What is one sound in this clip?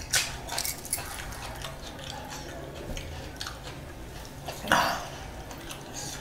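Fingers squelch and tear through soft cooked food.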